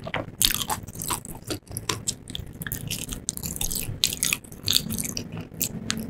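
Crispy fried chicken crunches loudly as a woman bites and chews close to a microphone.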